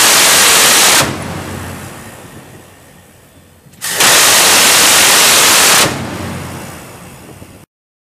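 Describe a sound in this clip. Gunfire echoes and rumbles away over open water.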